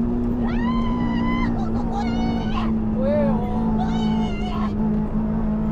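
A young woman squeals and shouts excitedly close by.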